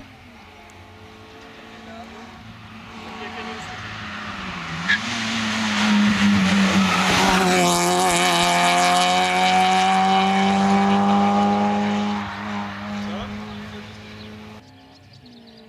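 A rally car engine approaches, roars past close by and fades into the distance.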